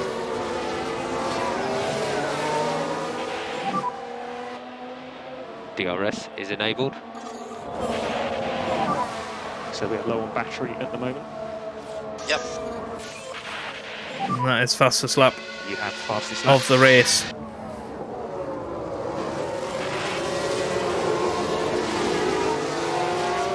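Racing car engines whine and roar as the cars speed by.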